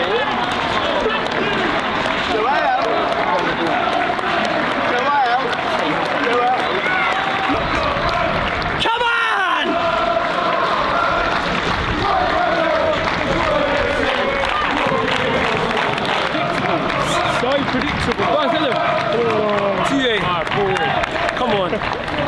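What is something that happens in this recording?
A large crowd of fans sings and chants loudly outdoors.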